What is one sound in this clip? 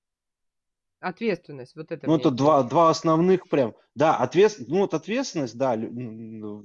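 An elderly woman talks with animation over an online call.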